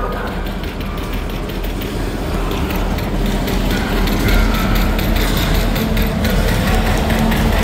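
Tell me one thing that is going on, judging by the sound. Loud game music and sound effects play over loudspeakers.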